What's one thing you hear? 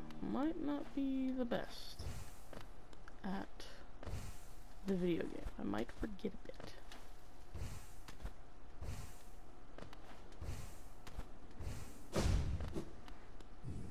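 Objects burst and shatter with sharp crunching hits.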